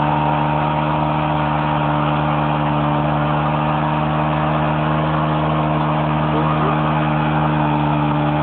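A motorcycle engine roars loudly at high revs.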